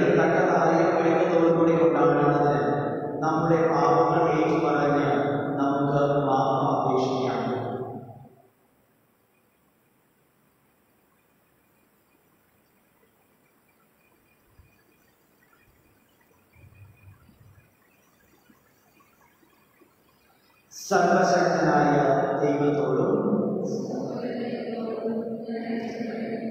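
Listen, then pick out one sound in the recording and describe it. A man sings through a microphone in a large echoing room.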